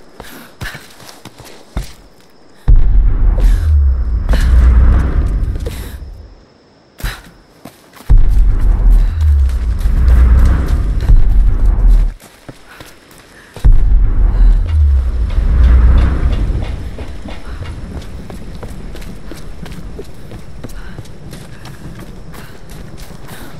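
Footsteps crunch on leaves and rocky ground.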